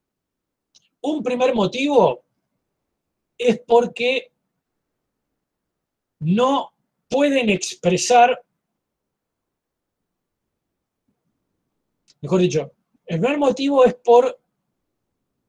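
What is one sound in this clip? A middle-aged man speaks calmly over an online call, pausing between phrases.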